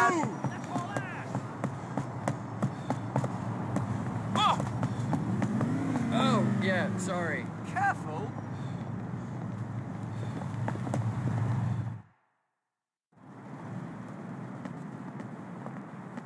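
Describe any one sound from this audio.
Footsteps tap along a pavement.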